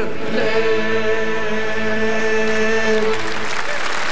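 A woman sings a long, held final note through a microphone.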